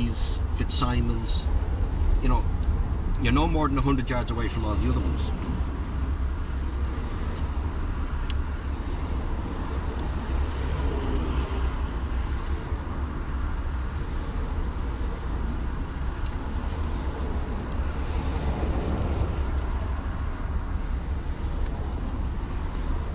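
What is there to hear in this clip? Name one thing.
A car engine hums at low speed inside a car.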